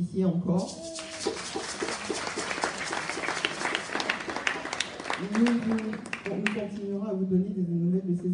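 A young woman sings into a microphone.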